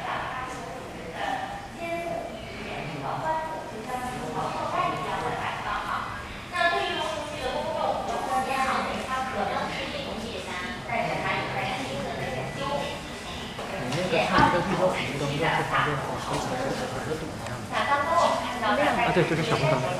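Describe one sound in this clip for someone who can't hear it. A crowd of adults talk in an echoing hall.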